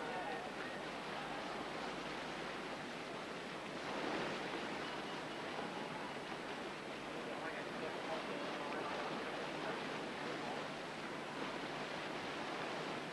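A paddle splashes through rough water.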